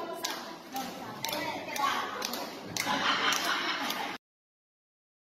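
A crowd of people clap their hands in a room.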